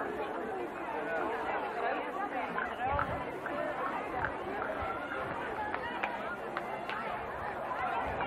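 A large outdoor crowd chatters and murmurs all around.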